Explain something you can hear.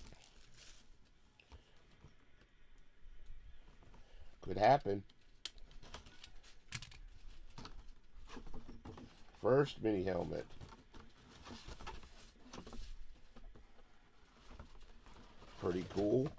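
A cardboard box is handled, its flaps scraping and tapping.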